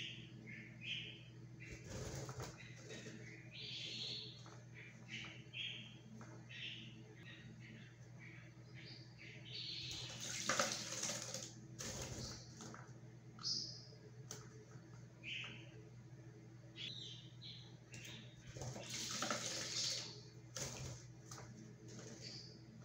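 A small bird flutters its wet wings.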